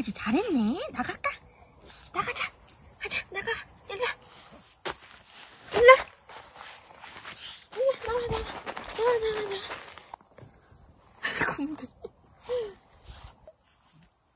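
A young woman talks playfully and close by.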